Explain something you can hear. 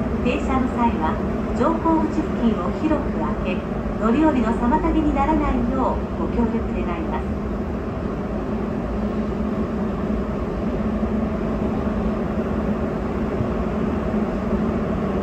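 A bus engine rumbles steadily while the bus drives along.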